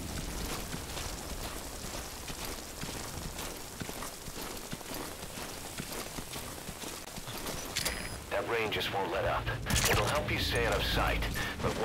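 A body crawls and scrapes over the ground.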